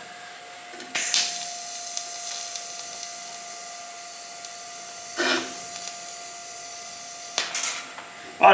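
A welding arc hisses and crackles steadily.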